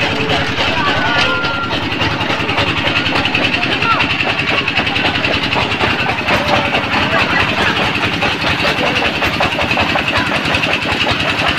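A crowd chatters outdoors.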